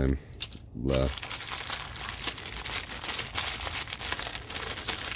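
A plastic bag crinkles and rustles as it is unwrapped.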